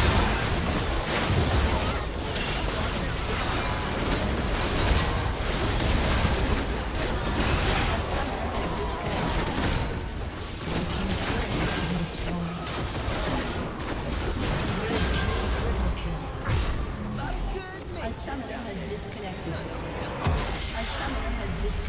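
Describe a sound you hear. Game spells and weapon blasts crash and whoosh in a hectic battle.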